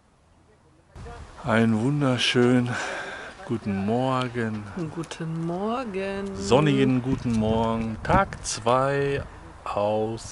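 A middle-aged man talks cheerfully and close by.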